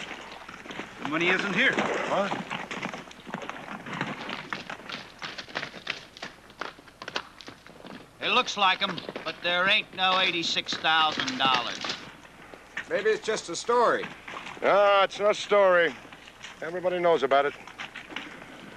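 An elderly man speaks calmly and firmly nearby.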